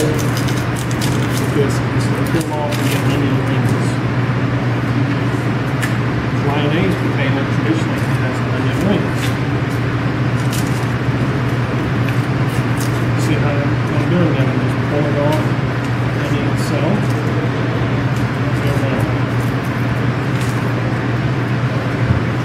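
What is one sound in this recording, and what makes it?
A knife scrapes as it peels potatoes.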